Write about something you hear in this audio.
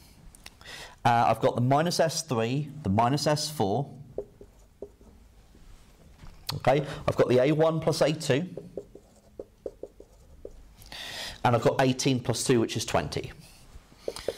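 A man explains calmly, close by.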